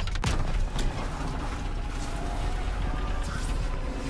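Sparks crackle and hiss from a burning vehicle.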